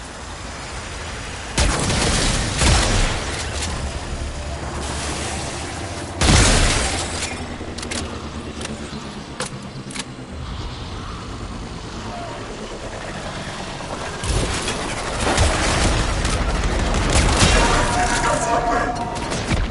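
Whooshing and rumbling effects rush by.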